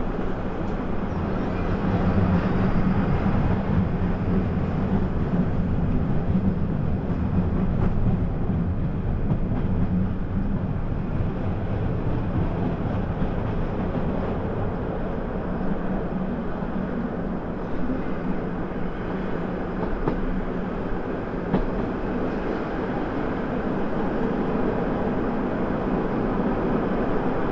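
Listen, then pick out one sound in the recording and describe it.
A tram rumbles steadily along its rails, heard from inside.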